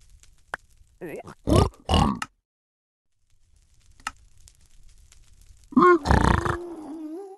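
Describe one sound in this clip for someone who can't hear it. A creature in a video game grunts and snorts.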